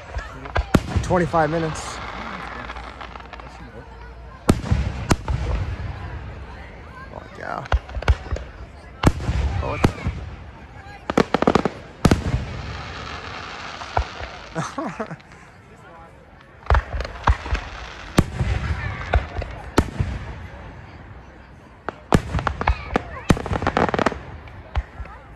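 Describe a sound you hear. Aerial firework shells boom and echo overhead.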